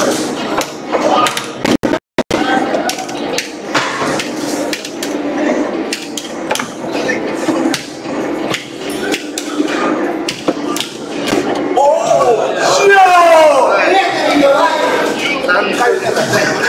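Arcade buttons click and clatter rapidly under quick presses.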